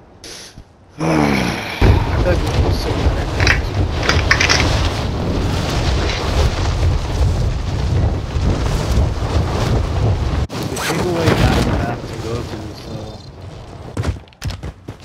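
Wind roars loudly past a skydiver in free fall.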